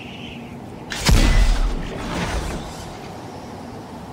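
A heavy blast bursts loudly and then rumbles away.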